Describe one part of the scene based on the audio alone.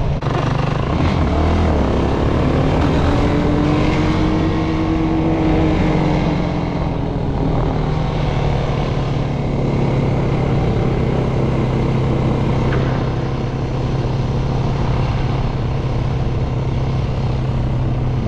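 Wind buffets loudly as a quad bike rides along.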